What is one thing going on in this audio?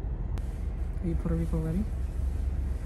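A young woman hums a short tune close by.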